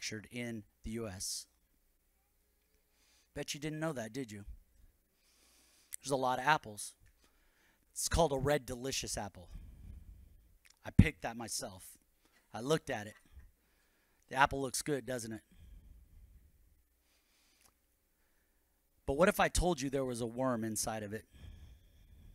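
A man speaks calmly into a microphone, heard through loudspeakers, with pauses between phrases.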